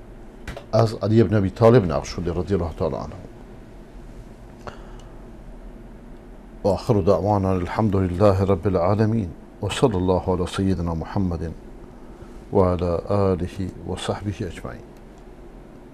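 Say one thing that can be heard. A middle-aged man speaks calmly and deliberately into a close microphone, with pauses.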